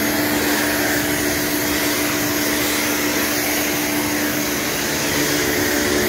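A pressure washer's motor hums steadily.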